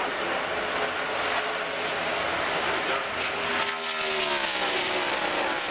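Race car engines roar loudly as a pack of cars speeds past.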